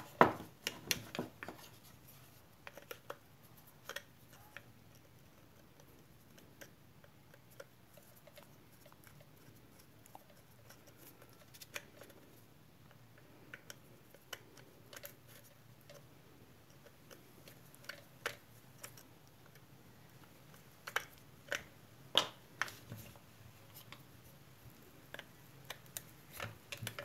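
A screwdriver scrapes and clicks against metal parts of a power tool.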